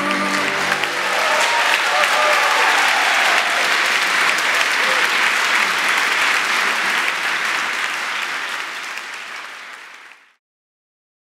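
A large audience applauds in a large echoing hall and fades away.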